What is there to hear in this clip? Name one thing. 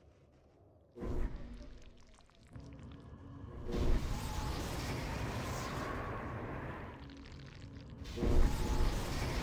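A spell hits with a sudden whoosh.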